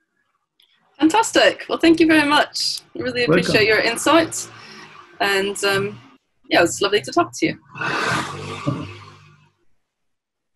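A woman speaks and laughs softly over an online call.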